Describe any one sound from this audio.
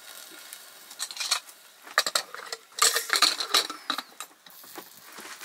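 A metal lid clanks onto a pot.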